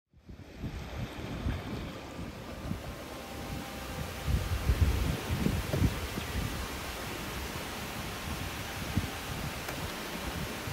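Waves wash gently against rocks along the shore.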